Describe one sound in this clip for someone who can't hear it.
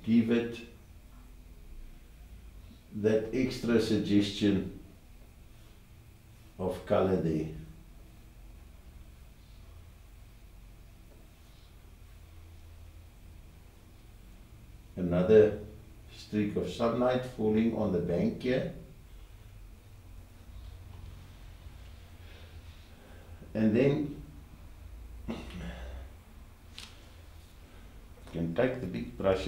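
An elderly man talks calmly nearby, in short bursts with pauses.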